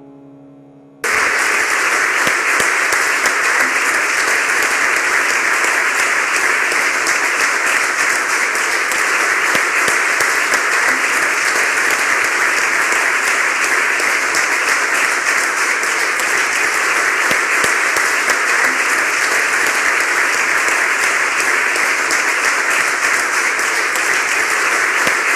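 An audience applauds steadily and loudly.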